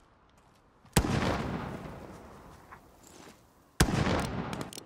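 A sniper rifle fires sharp, loud shots.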